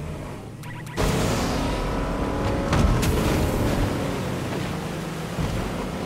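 Water splashes and sprays against a speeding boat.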